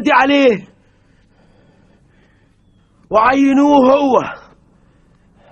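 A man calls out loudly in long, drawn-out cries.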